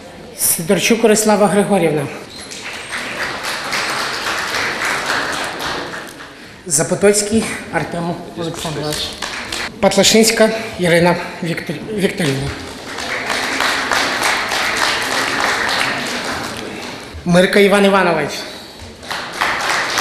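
A woman announces into a microphone, heard over loudspeakers in a large echoing hall.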